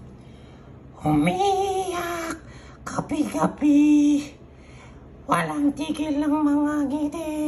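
A young woman sings softly into a microphone, heard through a loudspeaker.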